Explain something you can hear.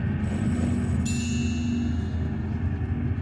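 A chime rings out once.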